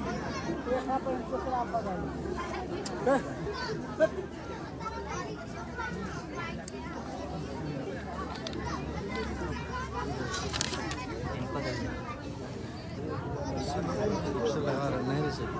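A woman cries and laments loudly nearby.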